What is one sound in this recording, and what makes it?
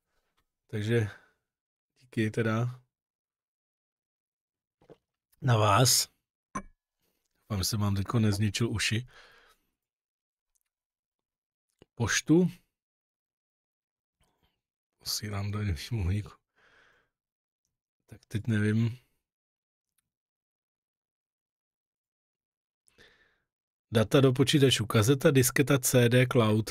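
A middle-aged man speaks into a close microphone in short, calm bursts with pauses.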